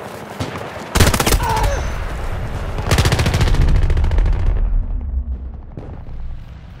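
Explosions boom loudly and rumble.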